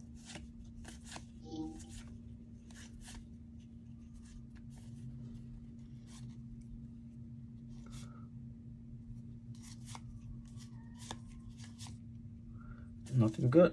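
Trading cards slide and flick softly against each other.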